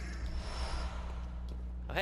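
A blade slashes wetly into flesh.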